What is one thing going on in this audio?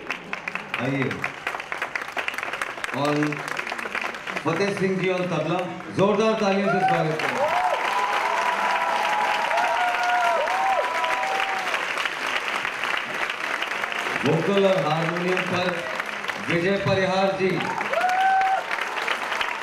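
A man speaks through a microphone with a loudspeaker, announcing in a large hall.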